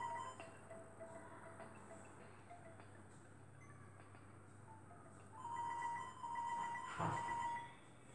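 A tablet game plays short electronic beeps and tones.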